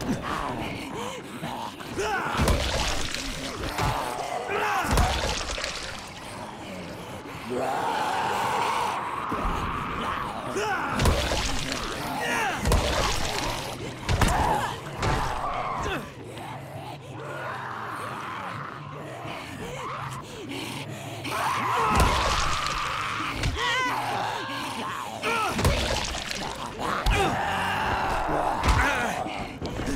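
Creatures snarl and groan close by.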